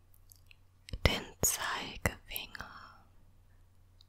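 A woman makes soft, wet mouth sounds close to a microphone.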